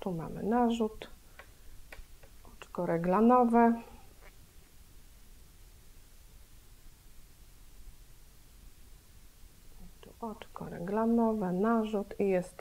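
Yarn and a knitting loom rustle and click softly.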